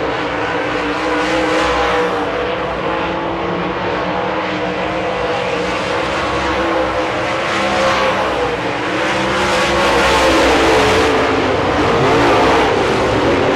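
Several race car engines roar loudly, rising and falling in pitch as the cars speed by.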